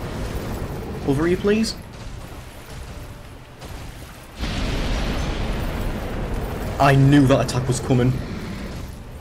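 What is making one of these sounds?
A dragon roars with a deep, growling cry.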